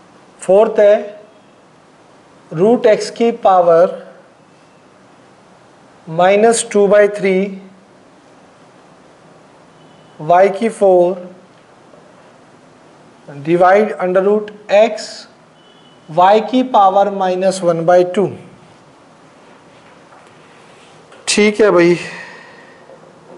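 A man speaks calmly in short bursts, as if explaining a lesson.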